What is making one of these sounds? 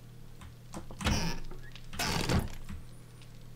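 Wooden cabinet doors creak open.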